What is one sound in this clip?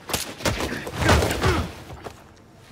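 A body thuds heavily onto a stone floor.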